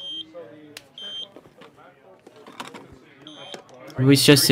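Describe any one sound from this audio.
A checkout scanner beeps several times.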